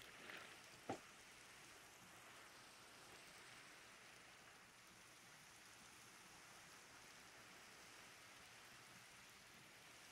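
Rain falls steadily onto water.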